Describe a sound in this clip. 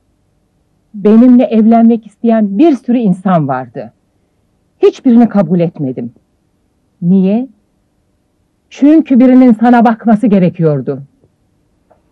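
A woman speaks earnestly, close by.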